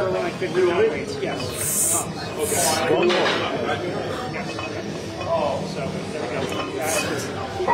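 A man strains and grunts while pressing a heavy weight.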